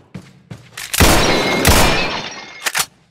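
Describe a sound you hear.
A handgun fires two loud shots that echo.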